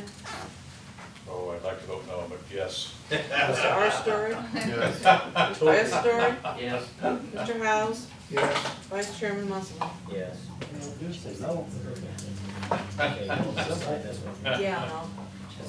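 Several men talk around a table, one after another.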